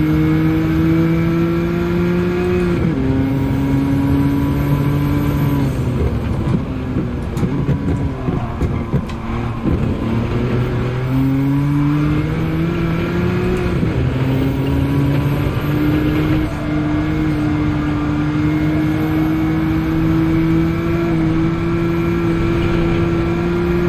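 A racing car engine roars at high revs, rising in pitch and dropping sharply with each gear change.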